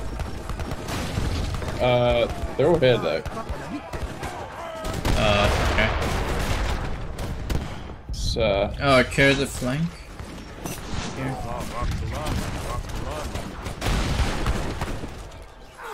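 Weapons clash in a busy battle.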